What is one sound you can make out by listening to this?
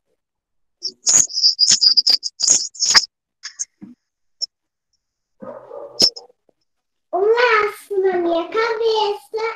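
A young child talks and laughs over an online call.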